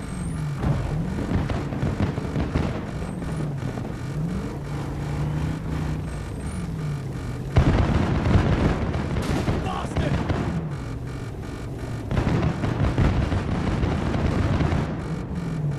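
Debris rattles and clatters down.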